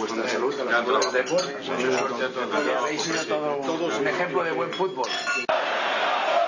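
Glasses clink in a toast.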